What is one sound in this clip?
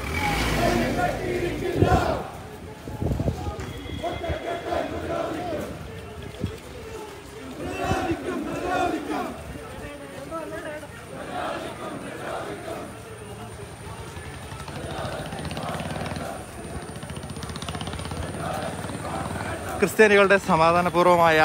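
A crowd of men chants slogans loudly outdoors.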